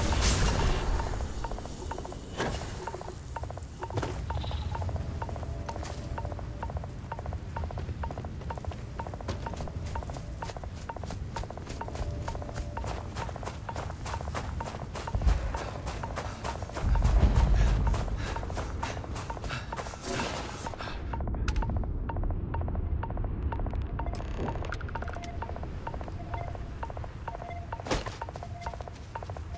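Footsteps crunch over loose gravel and rubble.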